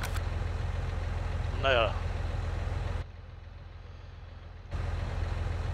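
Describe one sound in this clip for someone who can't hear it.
A tractor engine hums steadily at low idle.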